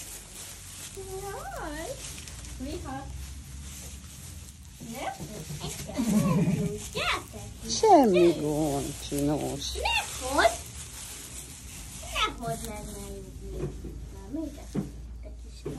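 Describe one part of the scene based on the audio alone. A young girl talks and squeals excitedly nearby.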